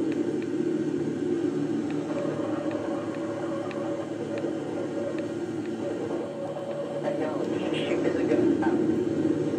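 A game vehicle's engine hums steadily as it drives.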